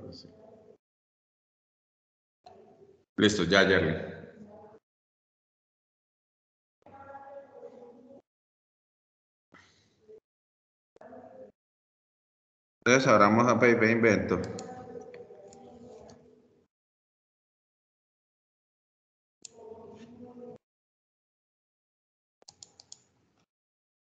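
A man speaks in short bursts through an online call.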